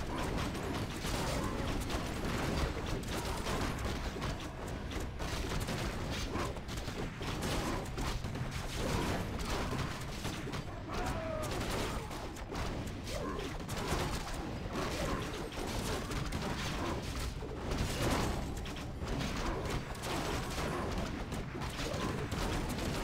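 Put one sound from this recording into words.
Weapons clash and spells burst in a busy game battle.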